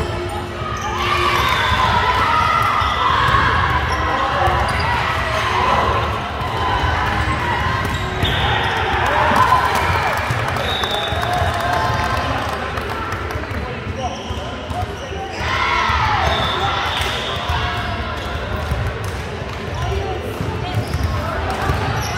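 Young women call out to each other in a large echoing hall.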